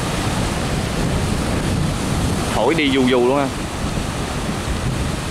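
Choppy waves splash and churn.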